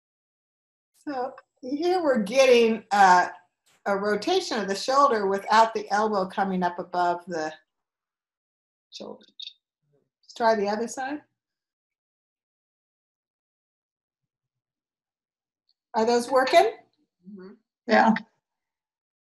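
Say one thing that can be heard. An older woman speaks with animation over an online call.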